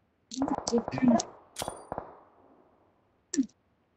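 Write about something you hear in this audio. A grenade is thrown with a short whoosh.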